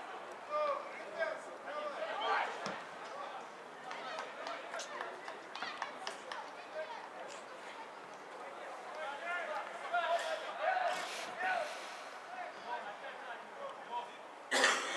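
Football players shout to each other across an open pitch outdoors.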